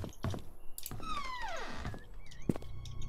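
A wooden door creaks as it swings open.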